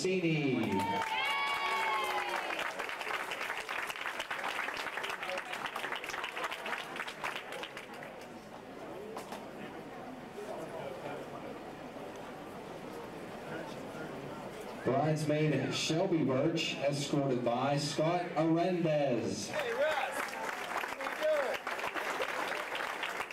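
A crowd claps and cheers in a large room.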